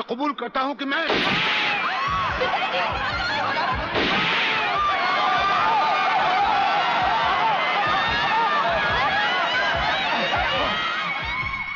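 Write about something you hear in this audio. A crowd shouts and clamours in an echoing hall.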